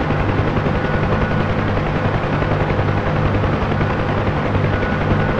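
A helicopter's rotor thumps steadily.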